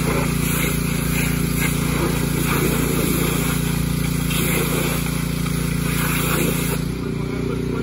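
A pressure washer sprays water hard onto pavement.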